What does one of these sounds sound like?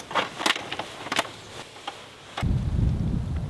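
Metal parts clatter and click as a case is handled.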